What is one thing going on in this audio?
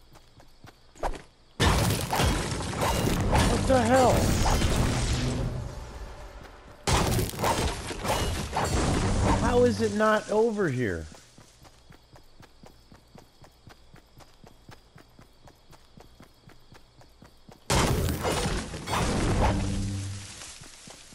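A pickaxe strikes stone and wood with sharp, repeated thuds.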